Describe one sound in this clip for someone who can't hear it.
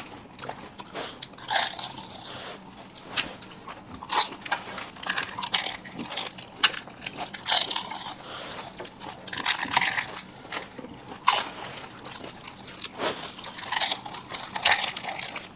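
Crisp shells crunch loudly as they are bitten, close to a microphone.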